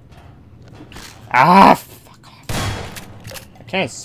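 A gun fires with a loud bang.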